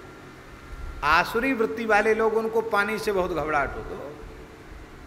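A middle-aged man chants in a drawn-out voice through a microphone.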